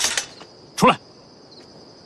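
A man speaks a short firm word nearby.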